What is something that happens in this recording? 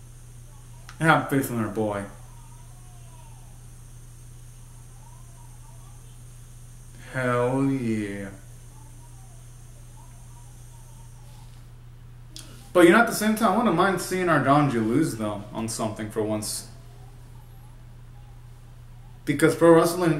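A young man sings in short bursts close by.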